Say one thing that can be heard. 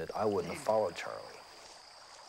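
A young man speaks nearby.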